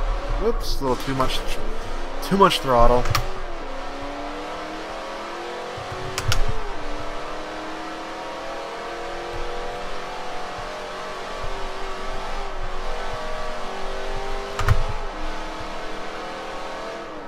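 A car engine revs high and climbs in pitch, dropping briefly at each gear change.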